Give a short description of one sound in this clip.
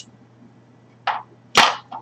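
A knife clacks against a cutting board.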